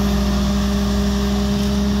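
Gravel pours from a loader bucket onto a pile.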